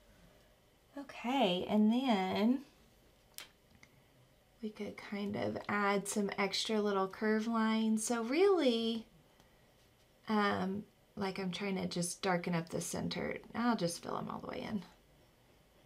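A young woman talks calmly and clearly, close to a microphone.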